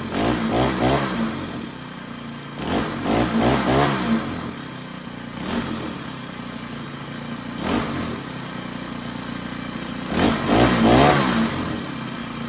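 A small petrol engine sputters and revs in short bursts, then dies down.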